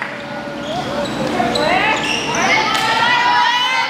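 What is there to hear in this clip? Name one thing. Young women call out to each other during play.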